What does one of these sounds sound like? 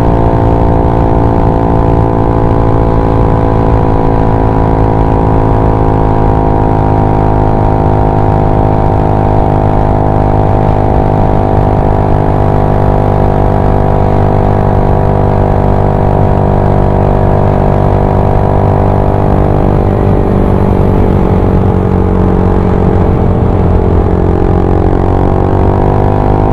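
A scooter engine hums steadily close by, then its pitch dips and rises again near the end.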